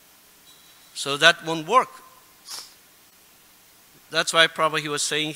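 A middle-aged man speaks calmly and close into a microphone, reading out.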